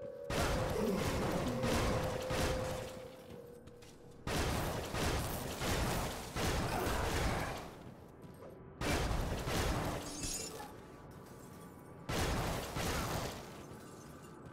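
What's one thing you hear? Spells crackle and blast in loud bursts.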